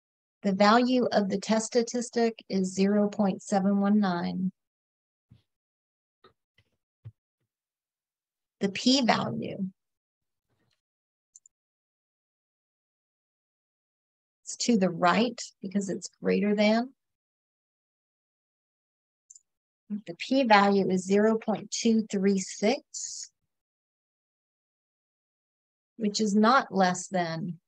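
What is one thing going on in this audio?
A woman talks calmly into a microphone, explaining in short bursts with pauses.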